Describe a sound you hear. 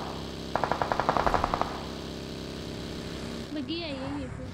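A buggy engine hums and rumbles.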